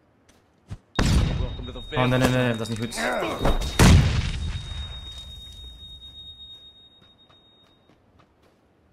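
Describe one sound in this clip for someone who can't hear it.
A stun grenade bangs loudly nearby, followed by a high ringing that slowly fades.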